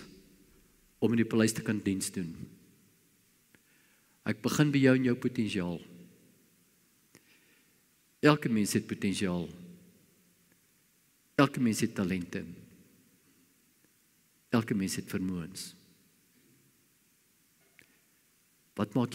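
An elderly man speaks slowly and deliberately through a microphone, in short phrases with pauses.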